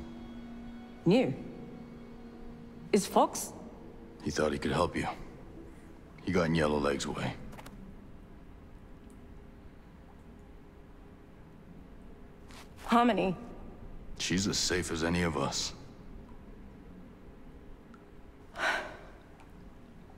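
A woman speaks quietly and with emotion, close by.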